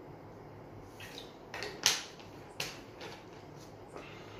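A plastic bottle crinkles and clicks in a man's hands.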